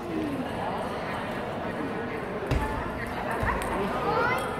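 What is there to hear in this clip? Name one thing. A table tennis ball clicks off paddles and the table in a large echoing hall.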